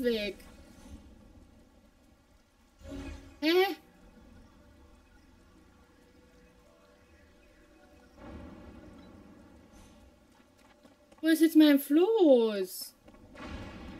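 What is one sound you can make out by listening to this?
A young woman talks and exclaims with animation into a microphone, close by.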